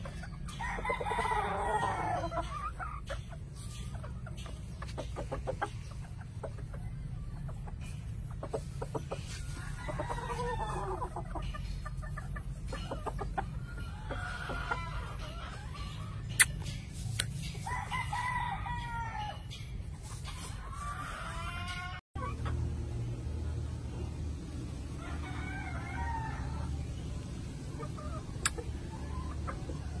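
Chickens scratch and peck in dry litter.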